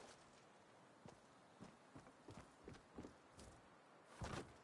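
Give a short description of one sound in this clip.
Footsteps patter quickly across grass.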